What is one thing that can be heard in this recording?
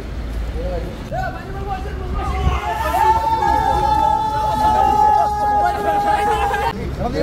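A crowd of men talk and call out excitedly close by.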